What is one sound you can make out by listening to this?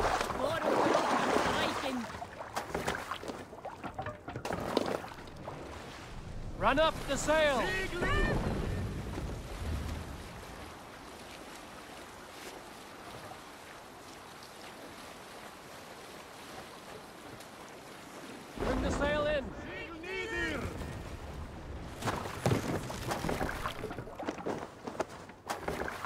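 Waves wash and splash against a wooden boat.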